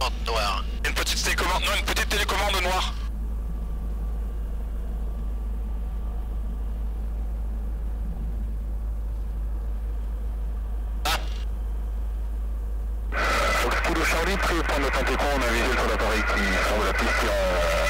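A small plane's engine drones steadily throughout.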